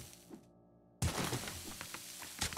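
A pickaxe strikes rock.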